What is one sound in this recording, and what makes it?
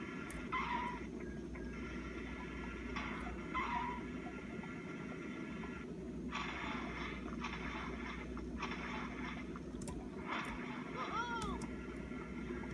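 Chirpy game sound effects play from small laptop speakers.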